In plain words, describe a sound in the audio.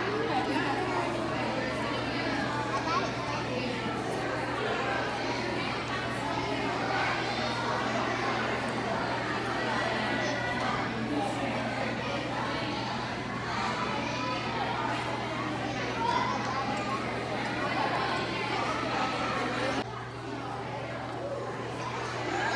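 Many children's voices chatter and echo around a large hall.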